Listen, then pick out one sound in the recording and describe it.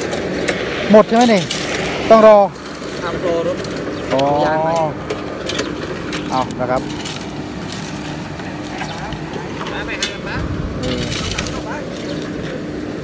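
A paving machine engine hums steadily.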